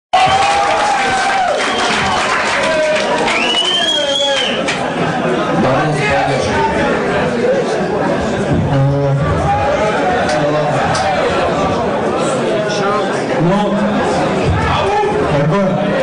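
A man raps loudly into a microphone over a loudspeaker.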